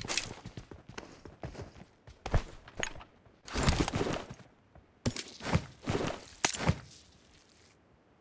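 Footsteps crunch quickly on rough ground.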